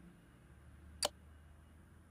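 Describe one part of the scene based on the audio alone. A sharp menu click sounds once.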